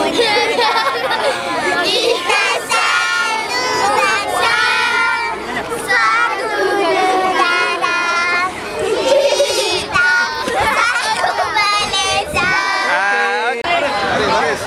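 Young girls shout and laugh excitedly close by.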